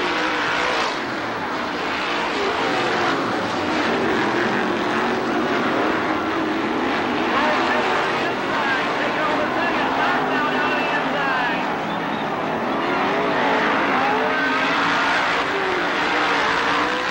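Racing engines roar loudly as cars speed around a dirt track.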